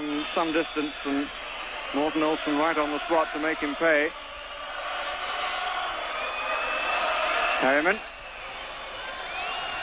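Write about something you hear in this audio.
A large stadium crowd murmurs and roars throughout.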